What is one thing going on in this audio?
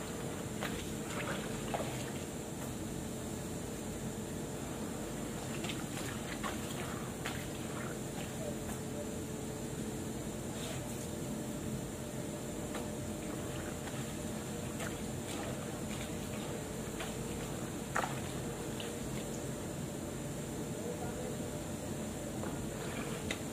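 Hands scrub and splash in water close by.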